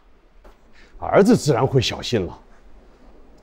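A man answers with animation, close by.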